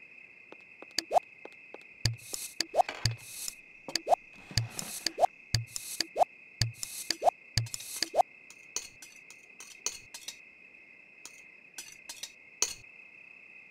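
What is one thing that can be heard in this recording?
Menu buttons click with short, sharp pops.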